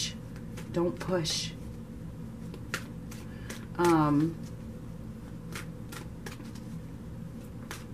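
Playing cards shuffle and flick softly in a hand.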